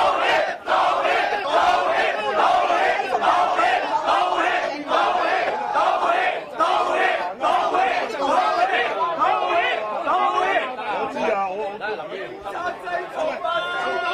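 A crowd of men and women shout and talk over one another close by.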